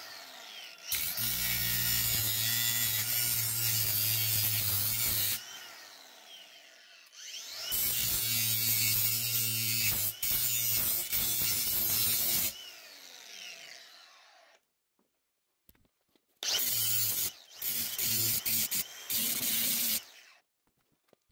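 An angle grinder whines loudly as it cuts through metal.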